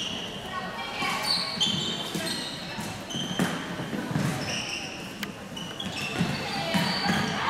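Young women players call out to each other across the court.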